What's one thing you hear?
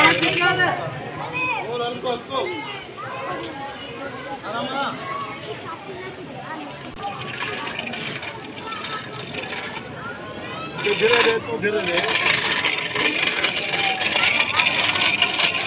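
A crowd of men and boys chatter and call out outdoors.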